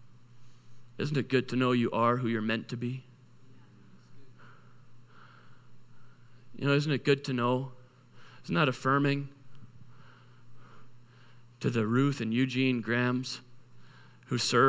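A man speaks calmly into a microphone, with pauses between phrases.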